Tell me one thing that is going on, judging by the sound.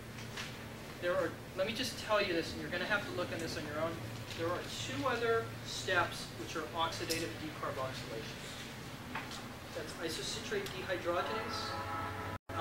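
A man lectures with animation.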